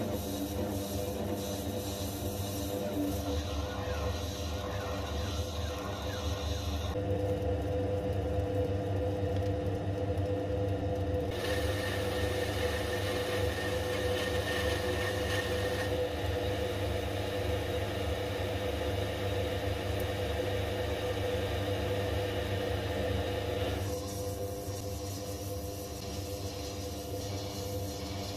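A cutting tool scrapes and whirs against spinning brass.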